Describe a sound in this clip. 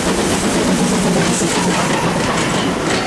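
A steam locomotive chuffs past close by.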